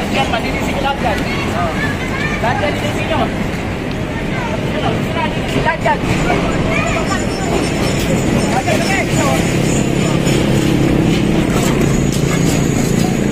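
A crowd of men and women talk and call out outdoors.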